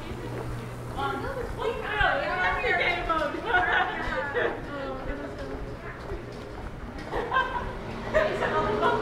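Women talk with each other nearby.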